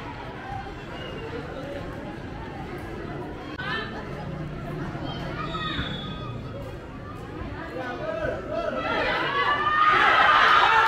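A crowd of spectators shouts and cheers outdoors, growing louder.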